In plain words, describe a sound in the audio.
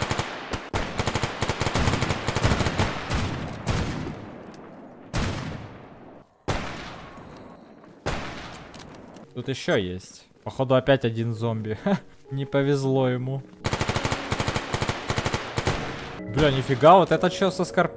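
Rifles fire in rapid bursts with loud sharp cracks.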